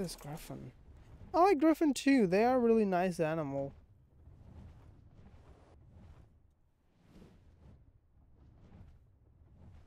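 Large wings flap heavily in flight.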